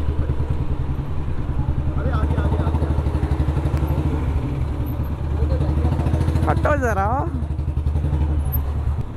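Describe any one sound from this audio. A motorcycle engine thumps steadily at idle, close by.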